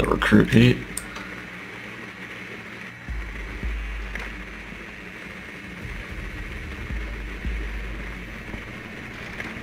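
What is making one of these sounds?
A small remote-controlled drone whirs as it rolls across a hard floor.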